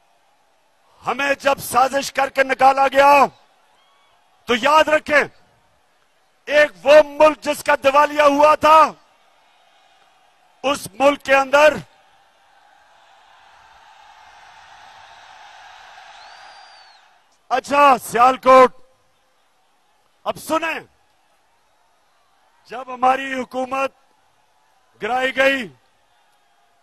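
A man speaks forcefully into a microphone over loudspeakers, in short bursts.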